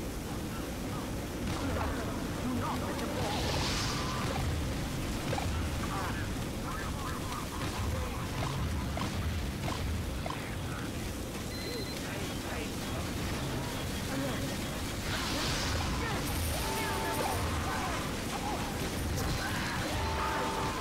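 A flamethrower roars in loud bursts.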